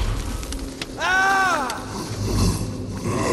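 A young man shouts angrily in a deep echoing voice.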